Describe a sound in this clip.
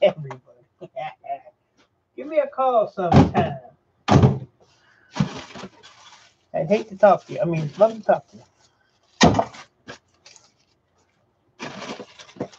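Hands rummage through a plastic bin of cables, rustling and clattering.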